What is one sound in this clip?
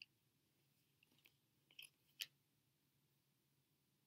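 Cards are placed softly on a table.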